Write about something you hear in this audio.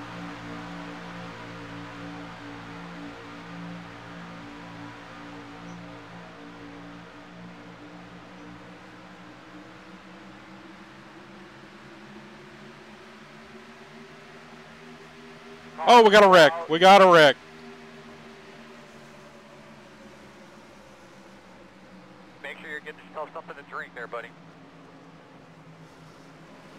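Racing car engines drone steadily.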